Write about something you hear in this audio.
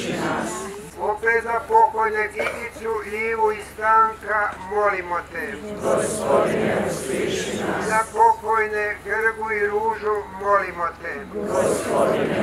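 An elderly man reads out calmly through a microphone and loudspeaker.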